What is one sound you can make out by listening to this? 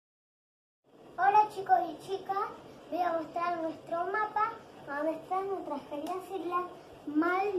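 A young girl speaks up close, with animation.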